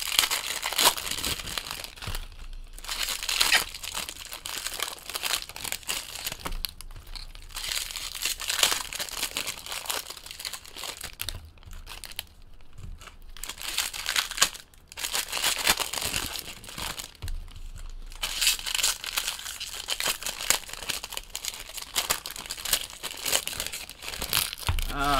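Plastic wrappers crinkle and tear as they are opened.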